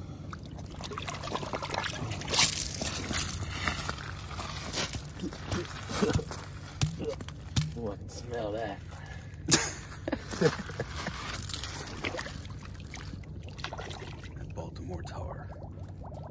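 Water splashes as a hand dips into it.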